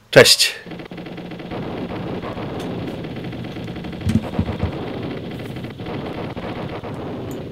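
Shots fire rapidly from a jet in an arcade game.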